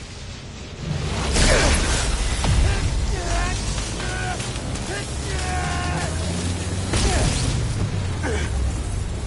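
Electricity crackles and bursts loudly.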